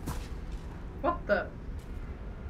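A young man briefly exclaims close to a microphone.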